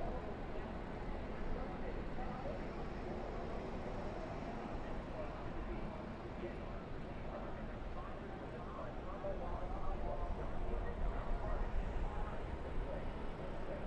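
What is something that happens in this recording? Wind rumbles loudly against a fast-moving car.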